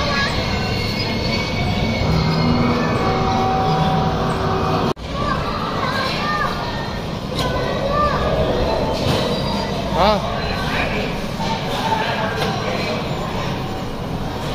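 Arcade machines play beeping electronic jingles and chimes throughout.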